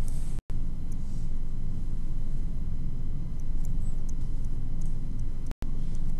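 A stylus scratches quickly in short strokes.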